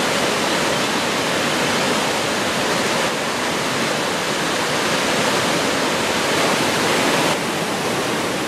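A waterfall roars, plunging over rock into a pool.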